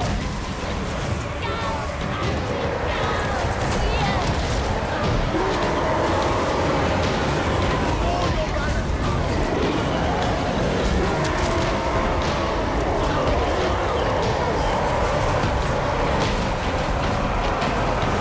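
Guns fire rapidly in a loud battle.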